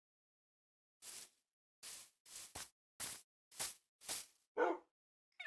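Footsteps thud on grass in quick succession.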